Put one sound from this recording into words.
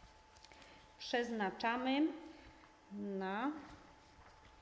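A woman speaks briefly into a microphone in a calm, formal voice.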